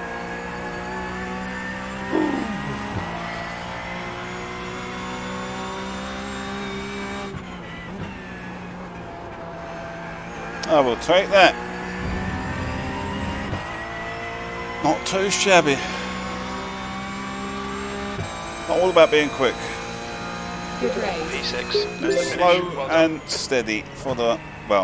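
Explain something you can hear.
A racing car engine drones steadily and revs up and down through gear changes.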